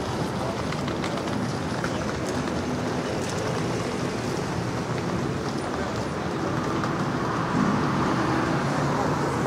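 A light wind rustles through tree leaves outdoors.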